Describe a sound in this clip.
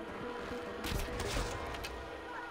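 A bowstring twangs as an arrow is shot.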